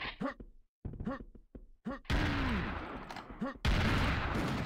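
A weapon fires repeatedly with short whooshing bursts.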